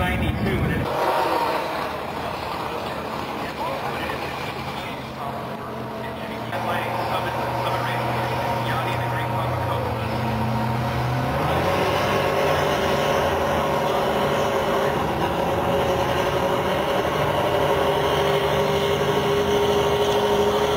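A race car engine idles with a steady deep rumble.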